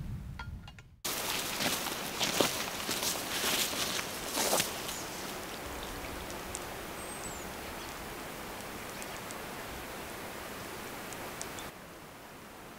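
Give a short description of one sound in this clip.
Small waves lap against a lakeshore.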